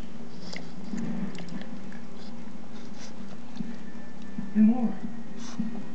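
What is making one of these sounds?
A small dog mouths and chews a plush toy.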